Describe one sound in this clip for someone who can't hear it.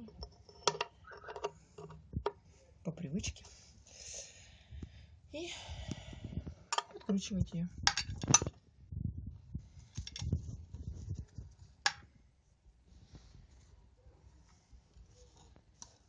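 Metal tools clink and scrape against a metal part.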